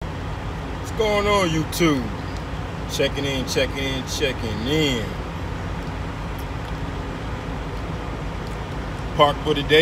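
A young man talks casually close to a phone's microphone.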